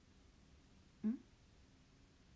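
A young woman gives a short, soft laugh close to a microphone.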